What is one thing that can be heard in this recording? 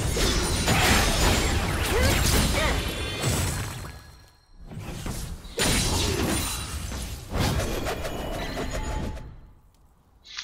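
Magic blasts and blows crash and burst in a fast fight.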